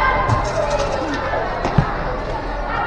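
A ball thumps as it is kicked on a hard floor.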